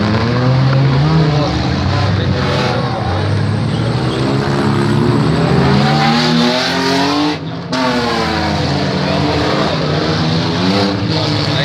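Car engines roar and rev nearby.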